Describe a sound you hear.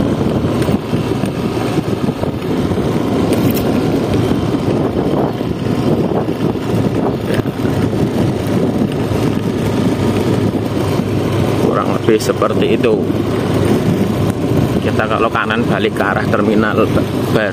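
Tyres roll steadily over an asphalt road.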